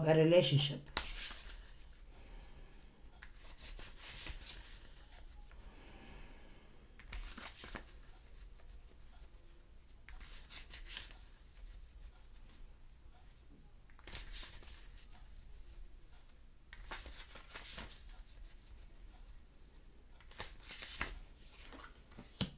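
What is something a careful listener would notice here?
Playing cards are shuffled with soft, repeated riffling bursts.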